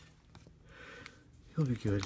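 Foil packs crinkle under a hand.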